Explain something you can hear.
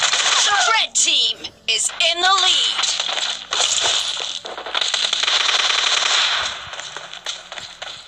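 Rapid gunfire rattles in quick bursts.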